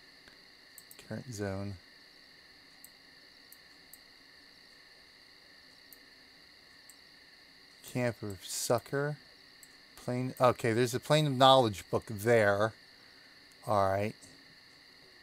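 A man talks casually into a microphone in short bursts.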